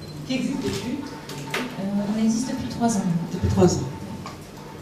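A young woman speaks calmly into a microphone.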